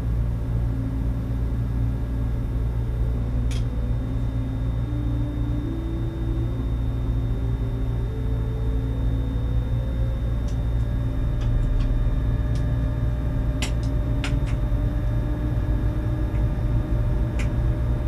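An electric train motor whines, rising in pitch in steps.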